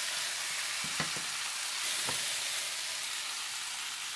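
A metal ladle clinks against a plate.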